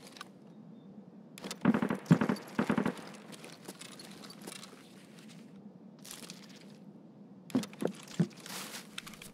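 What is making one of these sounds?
Gear rustles and clatters as small items are picked up.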